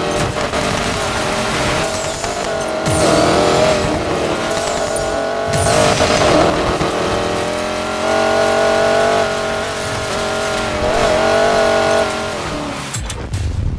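Tyres skid and slide on loose dirt.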